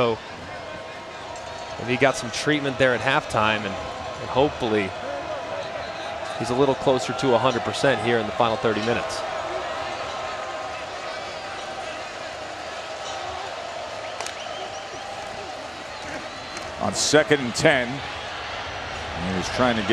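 A large stadium crowd murmurs and cheers in the open air.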